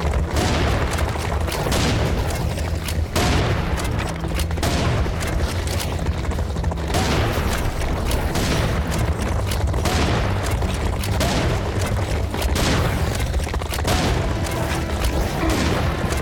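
A shotgun fires loud blasts again and again.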